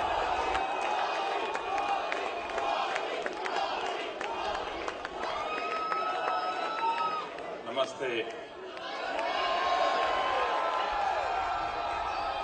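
An elderly man speaks through a microphone with animation.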